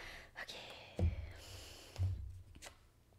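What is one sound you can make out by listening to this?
A card deck taps down on a table.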